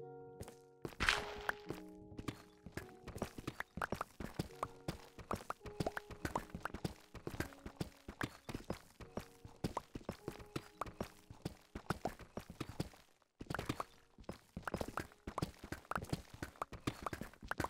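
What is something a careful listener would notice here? Stone blocks crack and break in quick succession.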